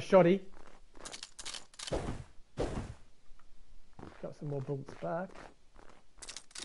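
Gunshots boom in short, quick bursts.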